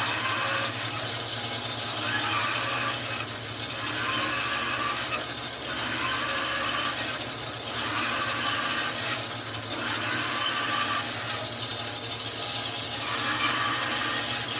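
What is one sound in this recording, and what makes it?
A band saw hums steadily and cuts through wood with a whining buzz.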